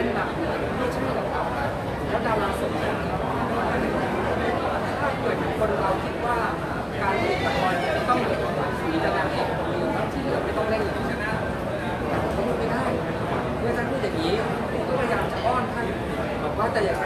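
A middle-aged man speaks steadily into microphones close by.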